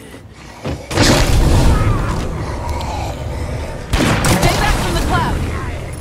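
Loud gunshots ring out.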